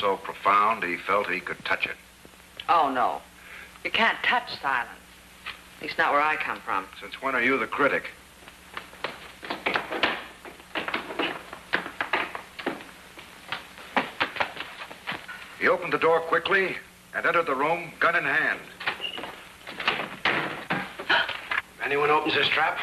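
A young woman speaks calmly.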